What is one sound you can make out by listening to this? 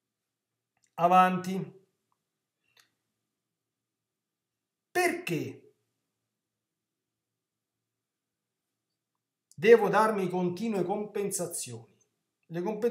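A man speaks calmly into a nearby microphone, in short bursts with pauses.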